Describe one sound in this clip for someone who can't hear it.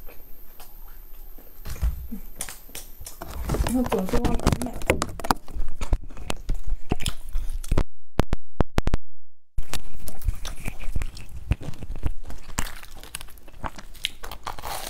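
A young woman bites into crusty bread with a loud crunch.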